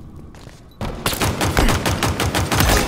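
An explosion booms.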